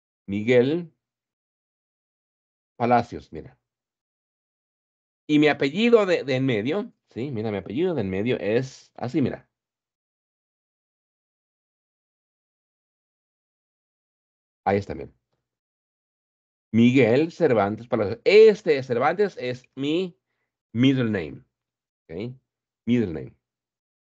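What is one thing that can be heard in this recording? A man speaks calmly in short bursts, heard through an online call.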